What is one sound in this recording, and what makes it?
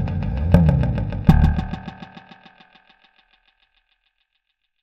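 Notes through an echo effect repeat quickly and evenly, then slowly fade away.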